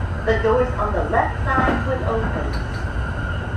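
A man calls out briefly and firmly nearby.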